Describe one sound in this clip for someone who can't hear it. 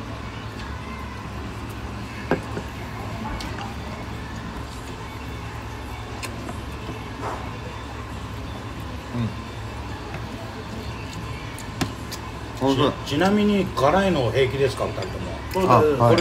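A man slurps noodles.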